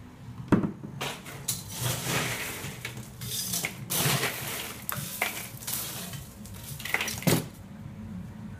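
Ice cubes rattle and clatter as a scoop digs into a cooler.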